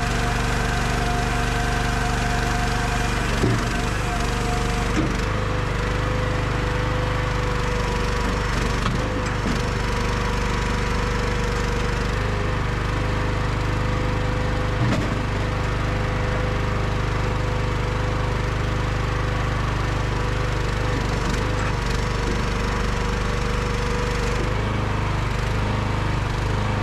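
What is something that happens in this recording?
A log splitter's engine runs with a steady drone outdoors.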